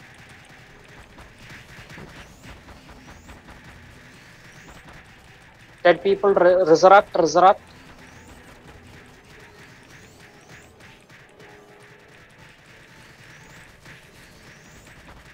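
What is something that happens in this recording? Magic spells crackle and chime repeatedly.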